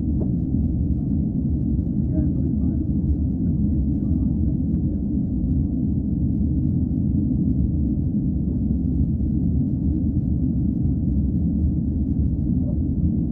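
A train rumbles steadily, heard from inside a carriage.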